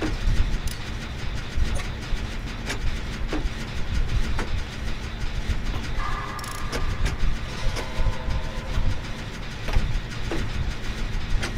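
An engine rumbles and rattles steadily.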